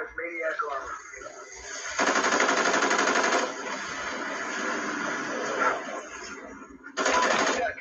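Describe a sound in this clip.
Rapid gunfire from a video game plays through a loudspeaker.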